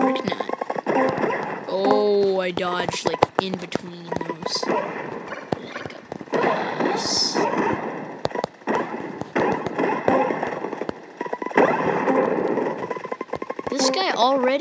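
Quick electronic blips and chimes sound over and over as a game character hops along.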